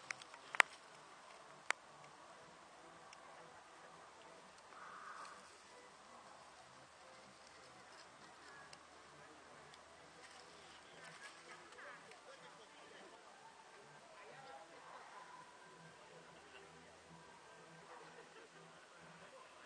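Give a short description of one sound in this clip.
Corn leaves rustle softly in a light breeze.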